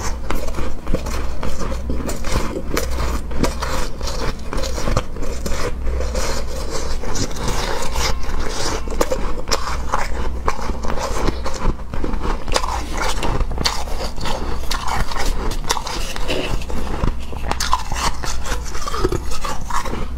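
Crunchy shaved ice crackles as a spoon scrapes and scoops it, close up.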